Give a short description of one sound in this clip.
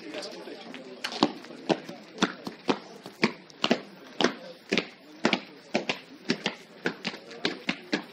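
Footsteps thud on grass close by, at a steady walking pace.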